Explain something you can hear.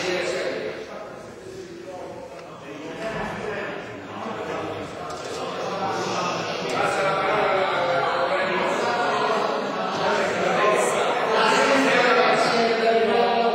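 A man speaks into a microphone, echoing through a large hall.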